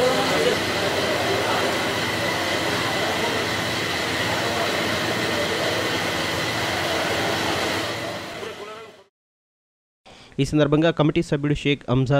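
Men talk among themselves nearby.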